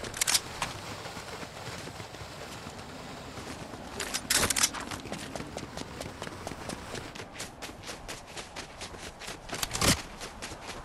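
Quick footsteps run over ice and crunching snow.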